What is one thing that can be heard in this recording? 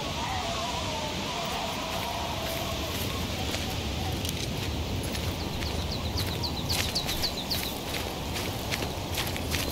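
Wind blows through snowy trees outdoors.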